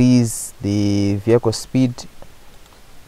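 A young man speaks close to a microphone, in drawn-out words.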